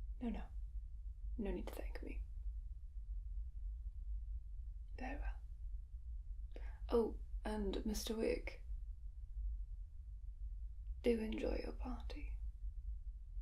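A young woman speaks calmly and clearly, close by, in short phrases with pauses.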